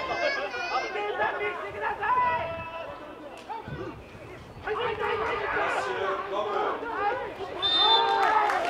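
A crowd of young men cheers and shouts from the sideline outdoors.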